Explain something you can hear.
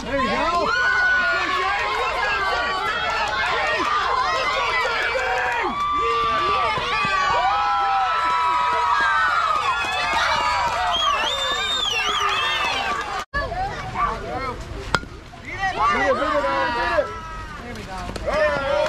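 Children and adults shout and cheer outdoors.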